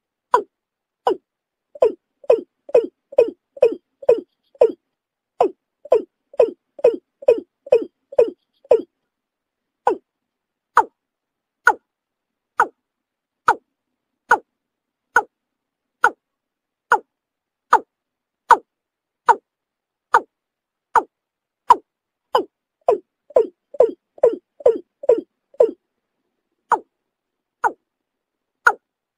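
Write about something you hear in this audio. A bird calls over and over in short, sharp notes, sometimes in quick bursts.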